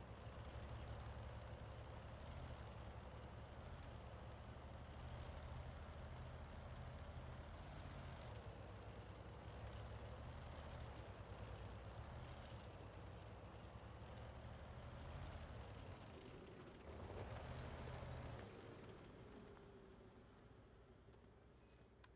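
A tank engine rumbles deeply and steadily as the tank drives.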